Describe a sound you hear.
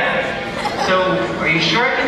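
A young man speaks calmly through a loudspeaker.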